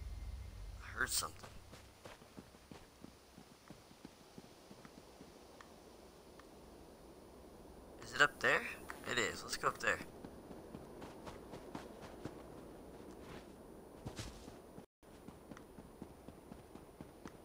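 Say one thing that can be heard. Footsteps patter on grass as a game character runs.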